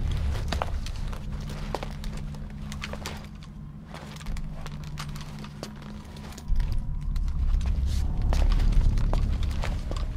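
Heavy boots step on a hard floor.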